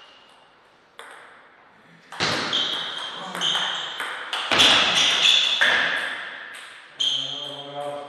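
A ping-pong ball clicks quickly back and forth between paddles and the table.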